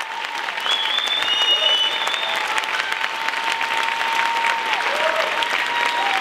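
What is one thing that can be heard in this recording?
Applause rings out loudly in a large hall.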